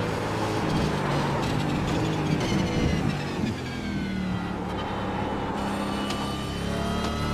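A racing car engine roars loudly, its pitch rising and falling as gears change.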